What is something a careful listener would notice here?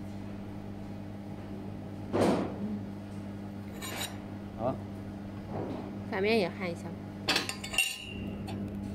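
Metal plates knock and clink against a block as they are handled.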